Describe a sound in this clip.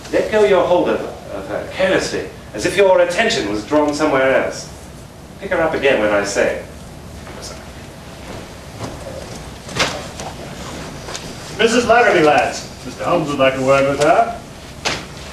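A man declaims loudly in a large echoing hall.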